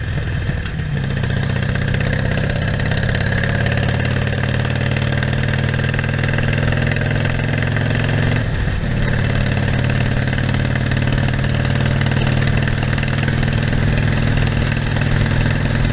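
A V-twin Harley-Davidson Sportster motorcycle pulls away and shifts up through the gears.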